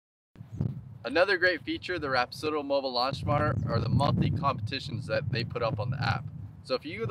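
A man speaks calmly and clearly, close to the microphone, outdoors.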